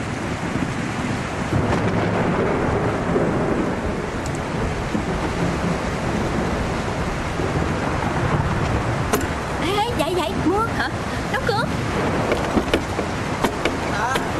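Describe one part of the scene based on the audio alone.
Heavy rain pours steadily outside.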